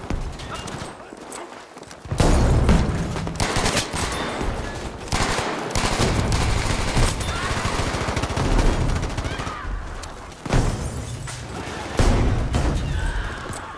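A weapon clicks as it is reloaded.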